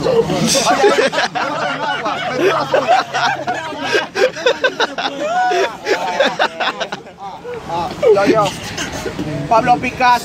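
Several young men talk and laugh excitedly close by.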